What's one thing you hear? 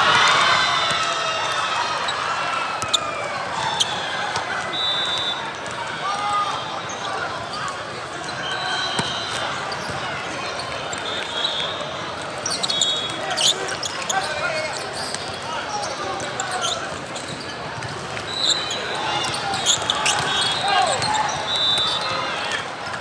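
A crowd of voices chatters and calls out in a large echoing hall.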